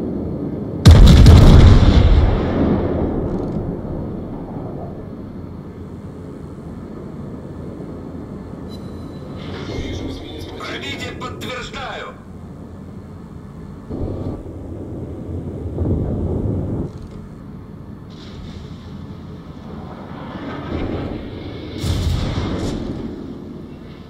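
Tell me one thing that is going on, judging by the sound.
Heavy ship guns fire with deep booming blasts.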